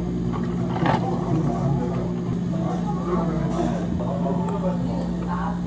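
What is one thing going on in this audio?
Coffee pours over ice.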